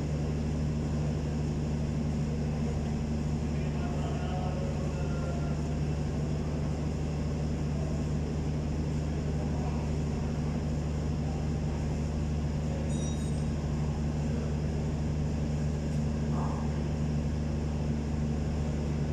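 A car engine idles steadily with a low hum.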